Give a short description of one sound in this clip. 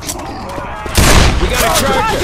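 A pistol fires with a sharp bang.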